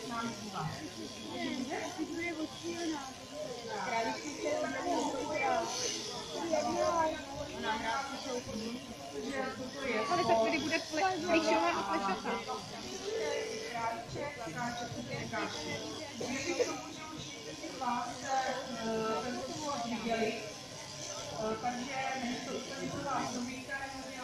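Electric clippers buzz steadily through a sheep's fleece.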